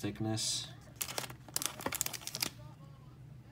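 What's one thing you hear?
A foil wrapper crinkles between fingers.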